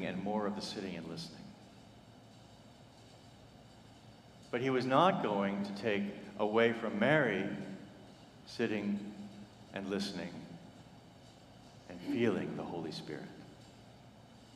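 A man speaks calmly through a microphone in a large echoing room, with long pauses.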